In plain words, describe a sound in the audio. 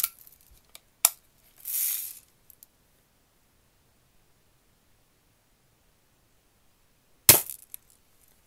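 A pellet strikes a metal target trap with a sharp, ringing smack.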